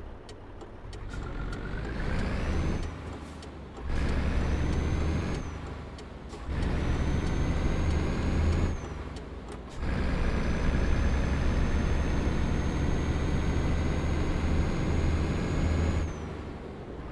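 A truck engine revs up through the gears, rising in pitch and dropping at each gear change.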